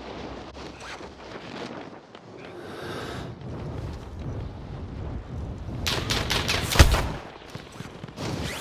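Wind rushes loudly past during a fall through the air.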